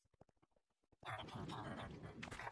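A magical portal hums and whooshes.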